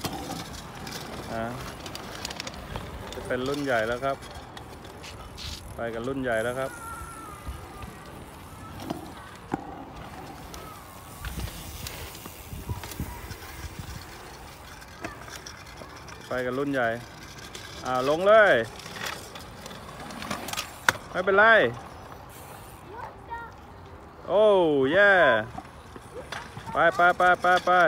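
Small bike and scooter wheels roll and rumble over pavement.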